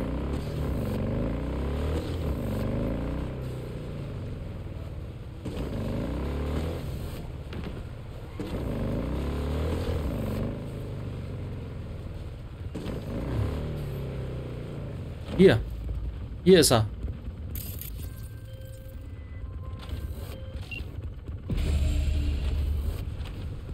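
A motorcycle engine hums and revs.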